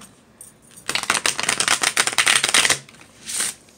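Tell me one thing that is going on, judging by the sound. A deck of cards is shuffled with a riffling flutter.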